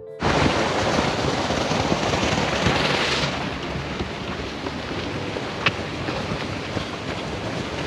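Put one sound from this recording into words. Footsteps thud on paving.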